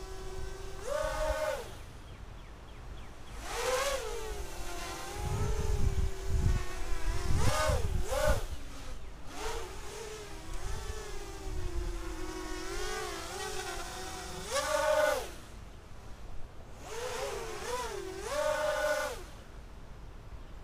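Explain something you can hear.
A small drone buzzes overhead, its whine rising and falling in pitch.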